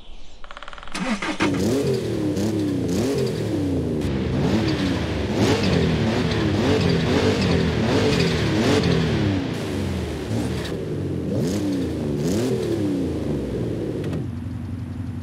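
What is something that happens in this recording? A car engine starts and revs up and down repeatedly.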